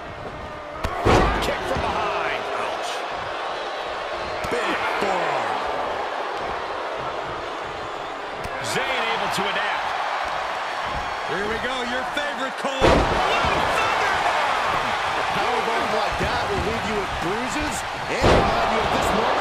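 A body slams onto a wrestling ring canvas with a heavy thud.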